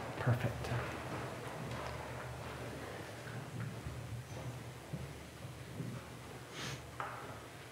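A man speaks calmly and softly in a large, echoing hall.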